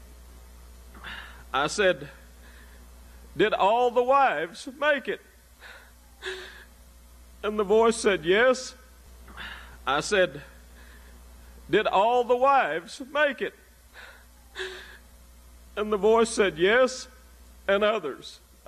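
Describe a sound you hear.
A middle-aged man speaks slowly and earnestly into a microphone, in short phrases with pauses.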